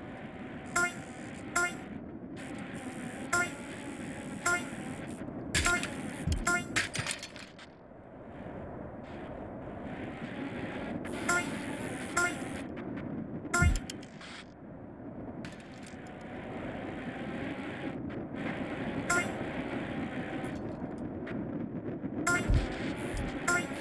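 A short electronic chime rings several times.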